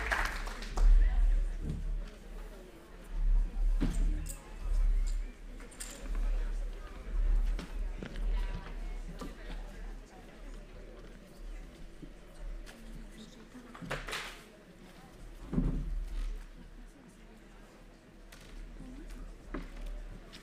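Young people murmur quietly nearby.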